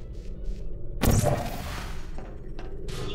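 A sci-fi gun fires with a sharp whooshing burst.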